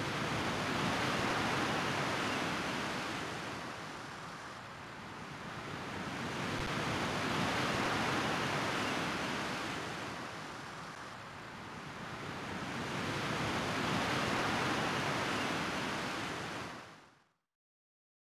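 Waves wash in slow, rolling swells.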